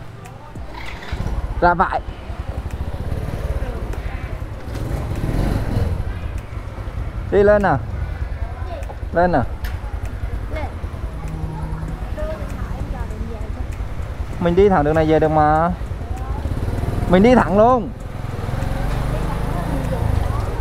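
A scooter engine rumbles steadily.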